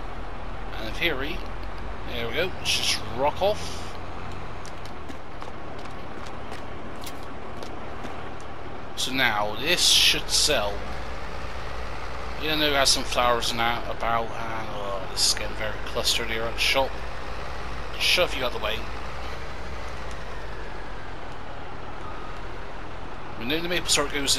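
A diesel engine hums low and steady.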